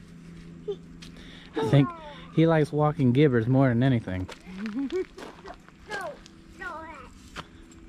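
Small footsteps crunch on dry ground.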